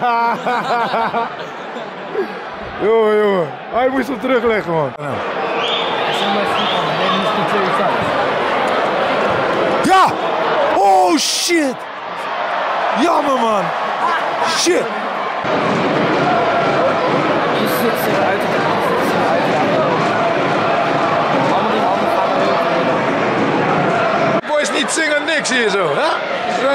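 Young men shout and sing loudly close by.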